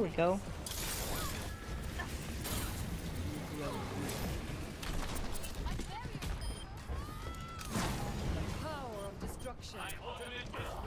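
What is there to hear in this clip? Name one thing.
Electronic video game effects whoosh and chime.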